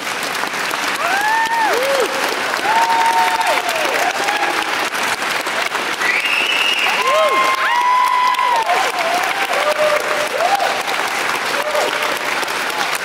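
Audience members whoop and cheer.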